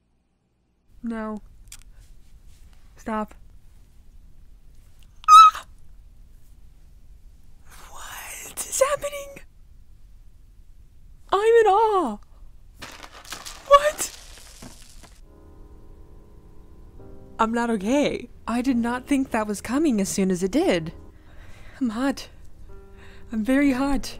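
A young woman squeals and talks excitedly into a close microphone.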